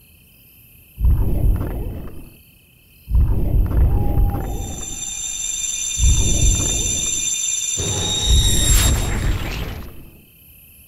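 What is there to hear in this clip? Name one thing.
A magic seal roars and crackles with deep, surging bursts.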